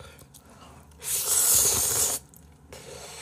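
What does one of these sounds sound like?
A young man loudly slurps noodles close to a microphone.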